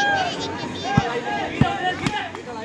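A volleyball thuds as a player bounces it on the ground.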